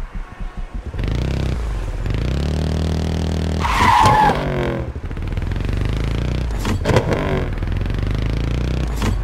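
A motorcycle engine roars and revs hard as it speeds away.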